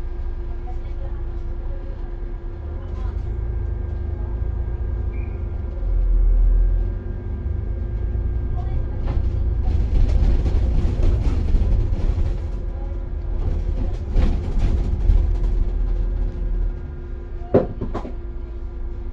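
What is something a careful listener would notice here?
A vehicle's engine hums steadily from inside as it drives along.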